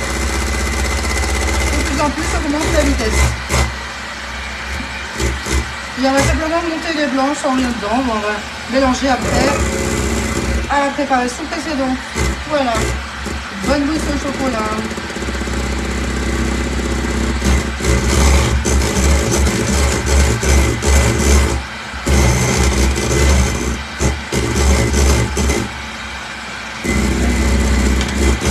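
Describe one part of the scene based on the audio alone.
A hand mixer whirs steadily close by.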